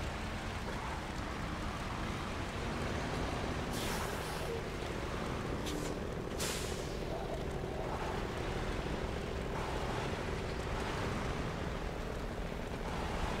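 A heavy truck engine rumbles steadily as the truck drives.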